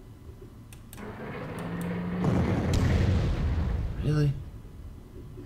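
A tank engine rumbles as the tank moves.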